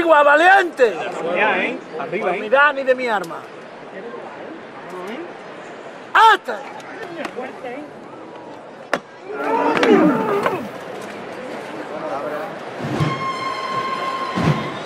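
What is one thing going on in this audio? A large crowd murmurs and chatters nearby outdoors.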